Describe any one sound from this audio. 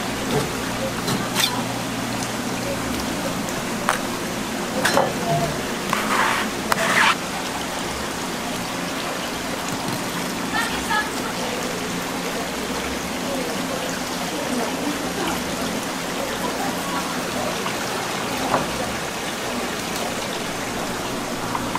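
A steady hum of running water and pumps fills the background.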